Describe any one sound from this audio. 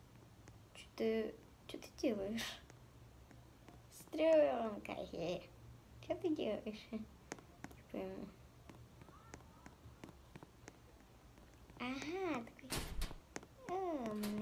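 A young girl talks with animation, close to a microphone.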